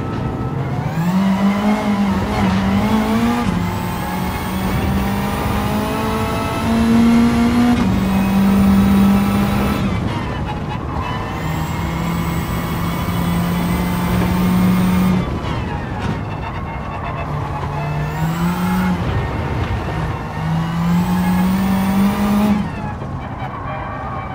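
A racing car engine roars loudly, revving up through the gears and dropping in pitch at each shift.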